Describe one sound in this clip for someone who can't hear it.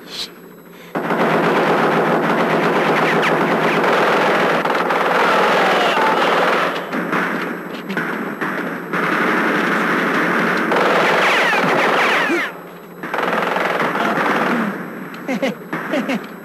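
Machine guns fire in long, rapid bursts.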